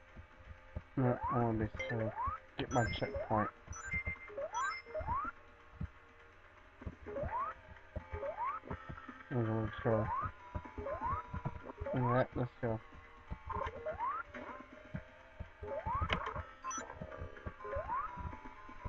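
Short rising jump sound effects repeat again and again.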